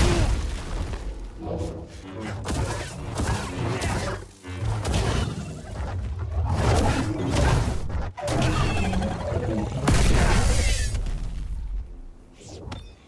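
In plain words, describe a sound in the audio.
Lightsabers hum and clash with heavy blows in a fight.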